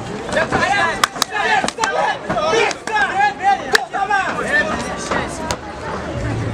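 Punches thud against bodies.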